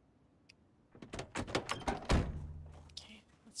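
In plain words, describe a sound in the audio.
A car door opens and slams shut.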